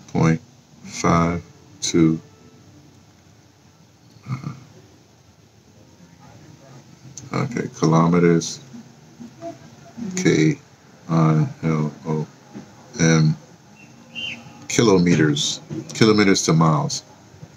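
An older man speaks calmly and slowly, close to a microphone, with pauses.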